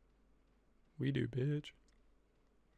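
A young man speaks briefly, close to a microphone.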